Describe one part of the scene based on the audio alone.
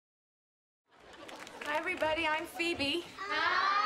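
A group of children sing together.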